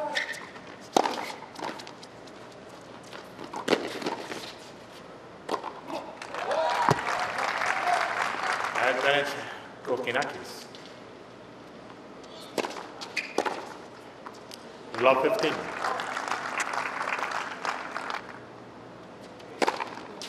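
Tennis balls are struck hard with rackets.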